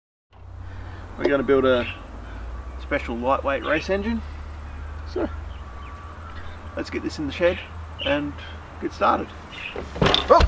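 A man speaks outdoors in a relaxed, chatty way.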